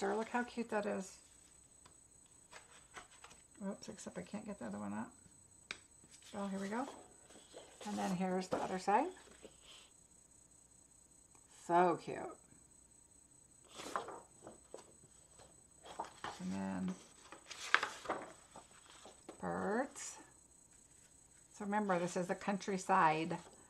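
Stiff paper sheets rustle and slide against each other.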